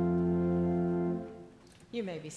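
An organ holds a sustained chord and then stops.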